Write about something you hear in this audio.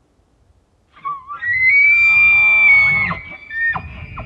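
A bull elk bugles nearby with a long, high, rising whistle.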